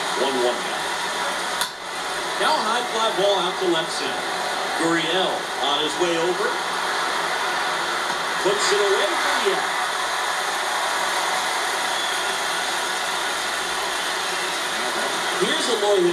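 A stadium crowd murmurs steadily through a television speaker.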